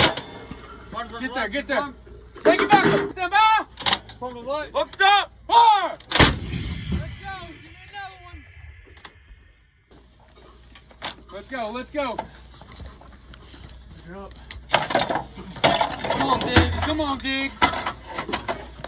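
Men shout commands outdoors.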